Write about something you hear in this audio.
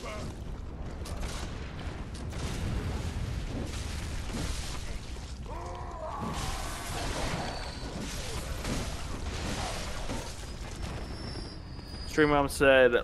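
Weapons slash and clang in a fight.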